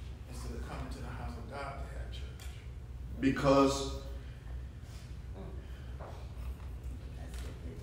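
A man speaks out loudly from nearby in an echoing room.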